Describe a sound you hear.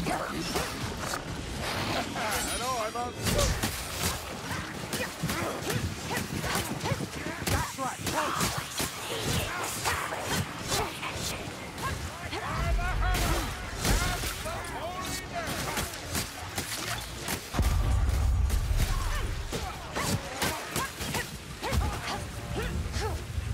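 Creatures screech and snarl.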